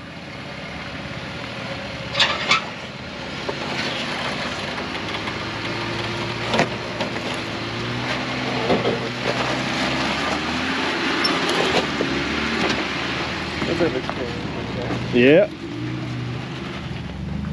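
Tyres grind and crunch over rock and gravel.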